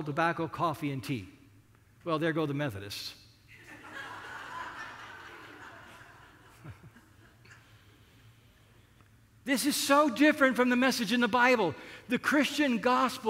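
An older man speaks with animation into a microphone, pausing now and then.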